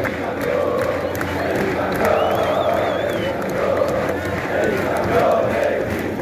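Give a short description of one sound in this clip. A huge stadium crowd sings and chants loudly in unison.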